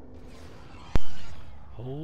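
A spacecraft lands with a loud metallic thud.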